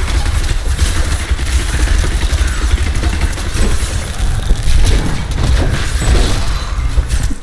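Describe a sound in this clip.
Skeletons clatter and groan as they are struck.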